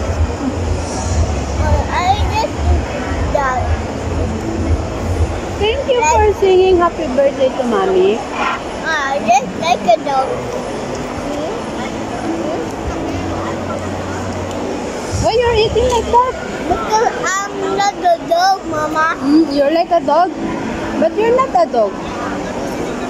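A young boy talks and giggles close by.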